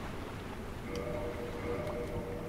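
A menu chimes softly.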